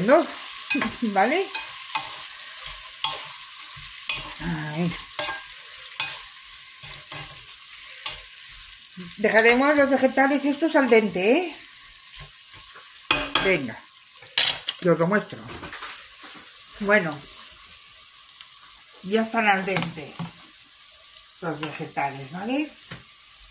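Vegetables sizzle in a hot pan.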